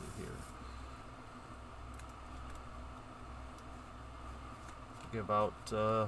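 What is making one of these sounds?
A foil card pack crinkles in the hands.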